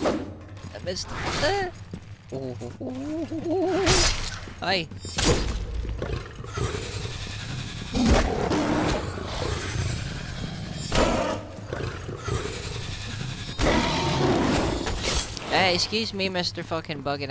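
A creature screeches and growls.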